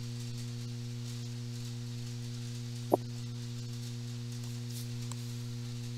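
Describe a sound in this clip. Playing cards slide and tap softly on a mat.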